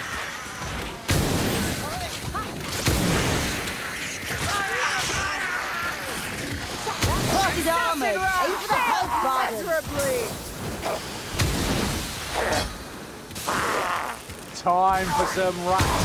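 Guns fire in loud, sharp blasts.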